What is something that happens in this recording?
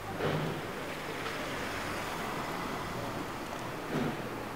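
A car drives past on a street.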